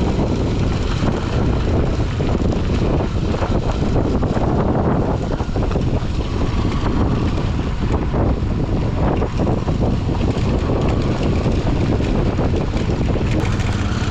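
Wind buffets loudly.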